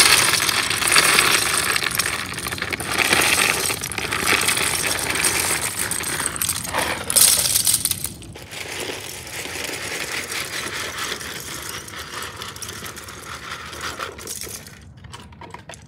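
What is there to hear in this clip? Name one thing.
Plastic toy bricks pour out of a box and clatter in a dense rattling stream.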